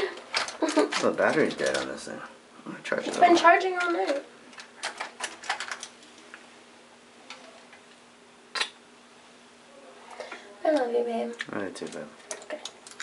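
A young woman speaks casually close by.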